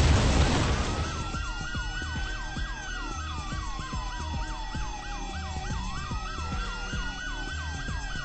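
A police siren wails and yelps nearby.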